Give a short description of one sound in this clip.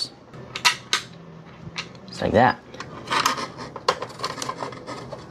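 Hard plastic parts click and scrape as they are handled.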